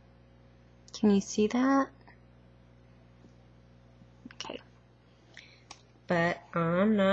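A woman speaks close to a microphone in short bursts.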